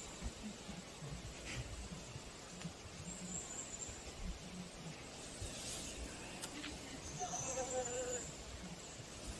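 A honeybee buzzes softly up close.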